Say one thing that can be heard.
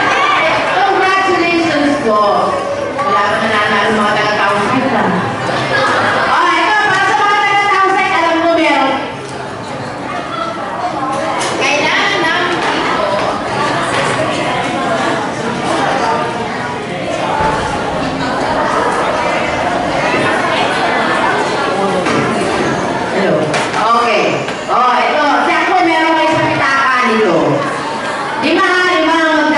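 A woman speaks with animation through a microphone and loudspeakers in an echoing hall.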